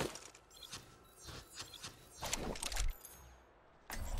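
Short electronic menu clicks sound.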